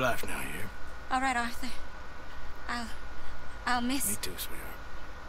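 A woman speaks softly and calmly.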